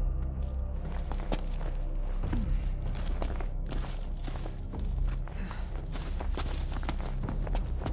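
Footsteps scrape and crunch over rock.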